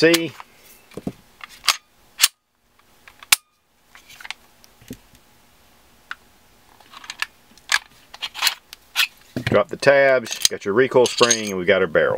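Metal and plastic gun parts click and clack as they are handled.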